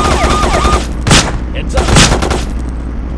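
A gun fires two loud shots.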